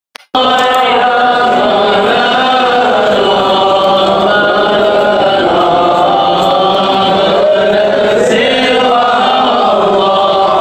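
An elderly man chants in a long, wavering melody close to a microphone.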